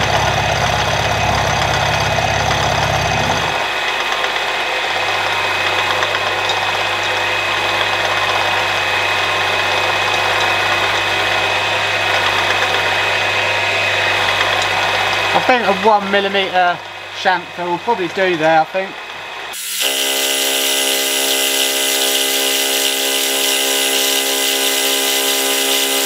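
A milling machine spindle whirs steadily.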